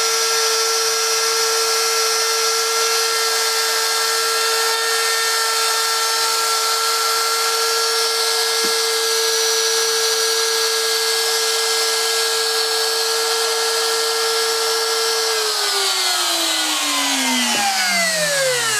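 A spindle motor whines steadily at high speed, then slowly winds down.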